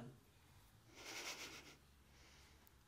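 A young woman laughs softly, close by.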